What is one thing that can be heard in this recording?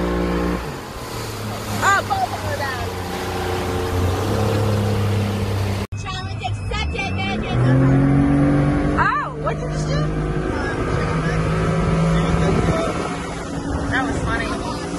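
A boat motor drones steadily.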